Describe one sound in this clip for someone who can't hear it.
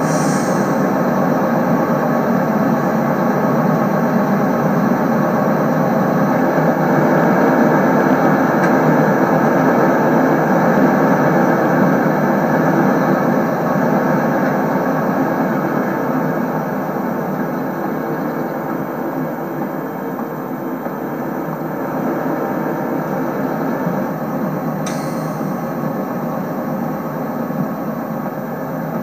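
A diesel train engine idles with a steady rumble.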